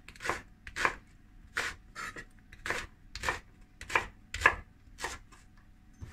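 A knife chops rhythmically against a wooden cutting board.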